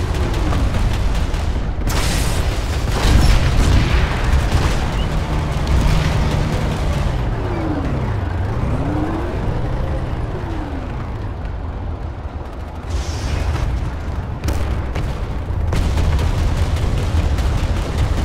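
A vehicle engine rumbles steadily.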